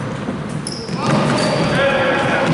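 Young men shout to one another across the court.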